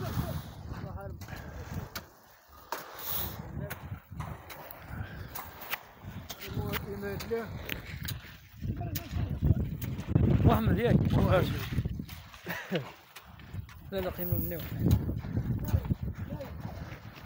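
Shovels and hoes scrape and strike stony soil.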